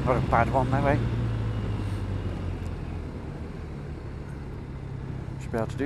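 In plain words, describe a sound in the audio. An engine hums steadily as a vehicle drives along a winding road.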